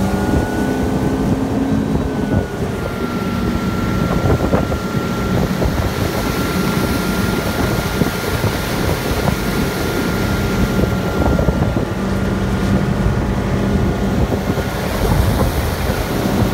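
Water rushes and churns behind a moving boat.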